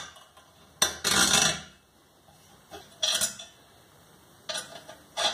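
Metal parts clink and scrape as they are fitted together by hand.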